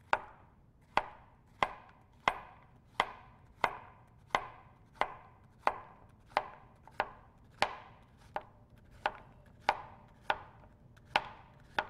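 A knife chops steadily through zucchini, knocking sharply on a cutting board.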